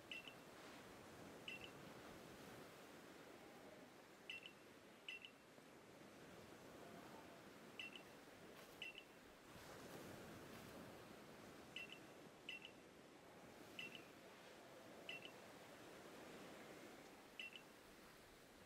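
Short electronic beeps chime in pairs at a steady pace.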